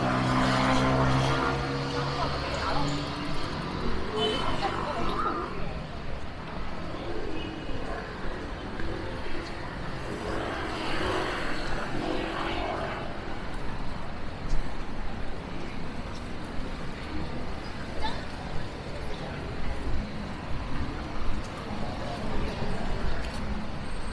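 A crowd murmurs with distant voices.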